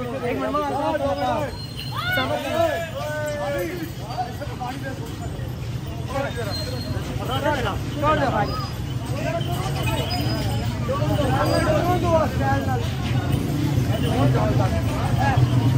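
Several men talk and call out loudly close by, outdoors.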